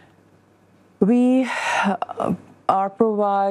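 A woman speaks calmly into a clip-on microphone.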